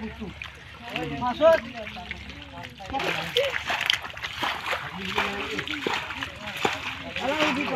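Hands splash and squelch in shallow muddy water.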